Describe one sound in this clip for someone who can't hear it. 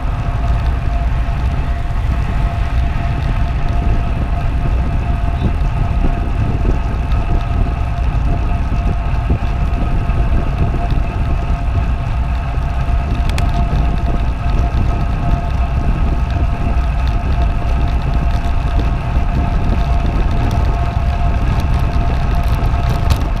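A bicycle drivetrain whirs steadily.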